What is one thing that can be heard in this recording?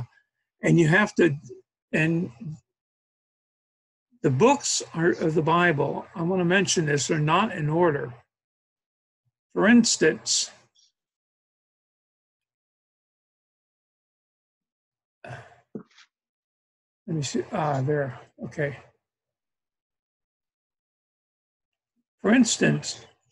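An older man talks calmly into a microphone, with pauses.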